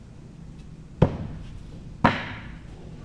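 Axes thud sharply into wooden targets, one after another.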